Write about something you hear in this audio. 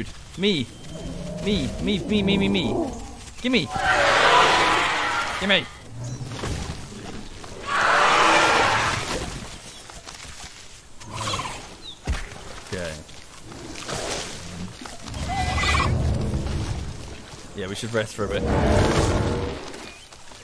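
Dinosaurs roar and screech loudly.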